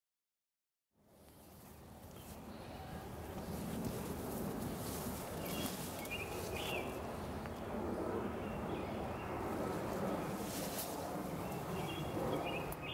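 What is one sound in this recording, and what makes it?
Tall plants rustle as a man walks through them outdoors.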